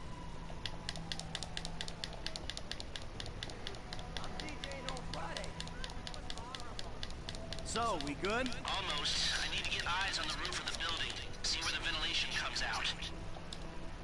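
Quick footsteps tap on pavement.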